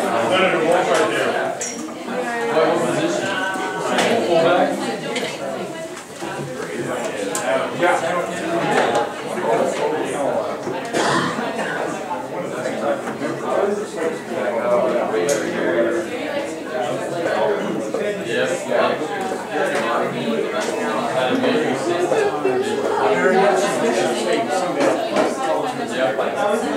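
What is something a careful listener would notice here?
Several men and women chatter at once nearby.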